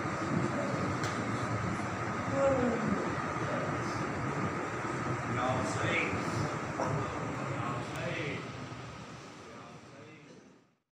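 A crowd of men murmurs quietly in an echoing room.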